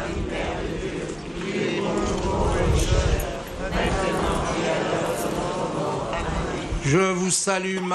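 A large crowd murmurs outdoors.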